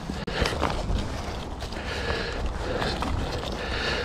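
Footsteps crunch on dry leaves and grass.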